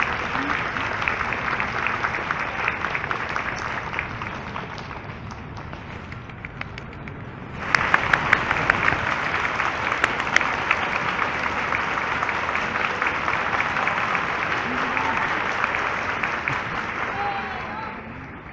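A large crowd applauds, the clapping swelling again after a brief lull.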